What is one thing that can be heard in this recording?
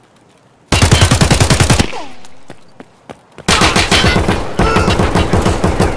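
An automatic rifle fires rapid bursts at close range.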